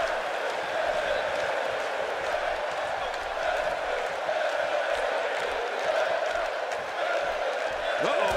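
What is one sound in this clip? A large crowd roars and cheers steadily in an echoing arena.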